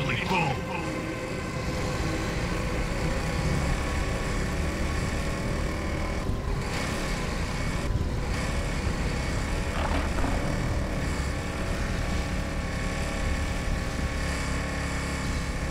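Water splashes and hisses under a speeding craft.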